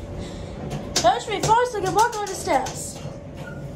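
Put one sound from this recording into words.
Elevator buttons beep as they are pressed.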